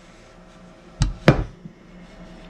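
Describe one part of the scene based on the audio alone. A heavy iron pan clunks down onto a stovetop.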